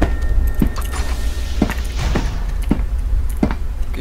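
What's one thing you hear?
A heavy sliding door opens.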